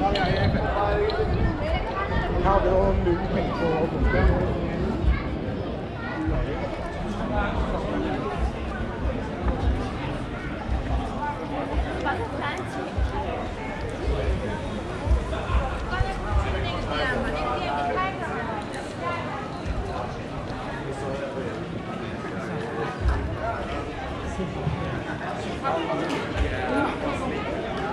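Footsteps tread on paving stones.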